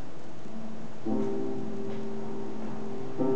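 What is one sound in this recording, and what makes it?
A piano plays a few sustained notes close by.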